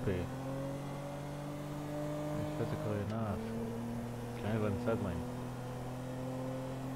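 A car engine hums steadily, with short shifts in pitch as it changes gear.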